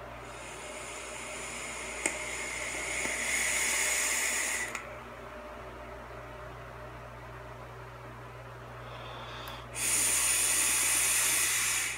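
An electronic vaporizer hisses and crackles up close as a man draws on it.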